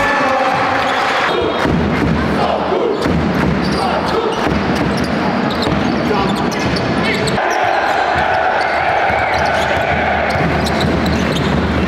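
A large crowd chants and cheers loudly in an echoing arena.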